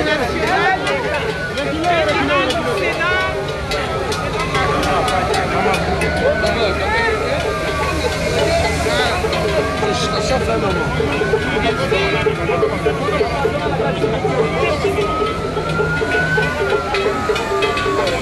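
A large crowd of men shouts and talks excitedly close by.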